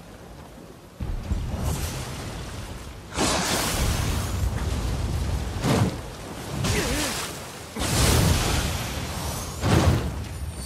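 Heavy hits land with loud thuds.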